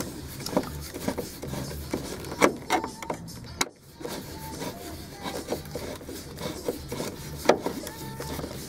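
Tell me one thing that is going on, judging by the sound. Small metal parts click and knock close by.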